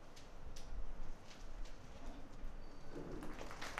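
Paper rustles as a packet is handed over.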